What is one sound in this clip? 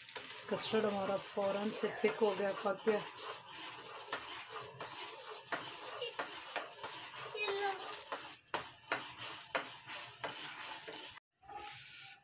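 A spatula scrapes and knocks against a metal pot.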